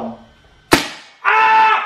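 A toy gun fires with a sharp snap.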